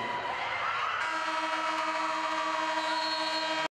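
A loud buzzer sounds steadily.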